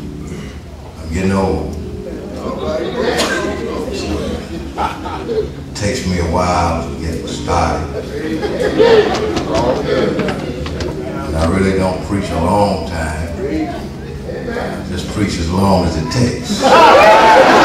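An elderly man speaks steadily through a microphone in an echoing hall.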